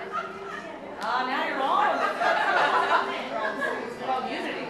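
A woman laughs loudly and heartily.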